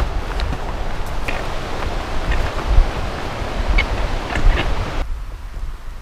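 Leaves and grass brush and rustle against a moving body.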